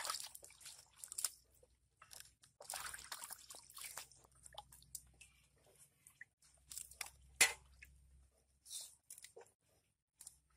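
Water splashes and sloshes as hands scrub in a basin.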